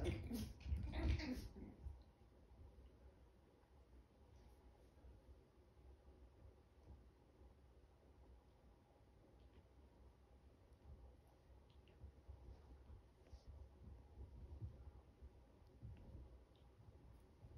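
Two puppies scuffle and tussle on a carpet.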